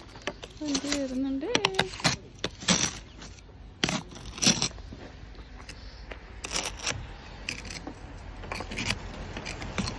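A plastic scraper scrapes and brushes snow off a car window.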